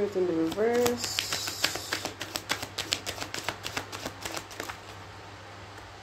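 Banknotes flick rapidly as they are counted by hand.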